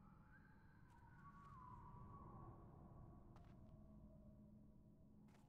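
A magic spell hums and whooshes faintly.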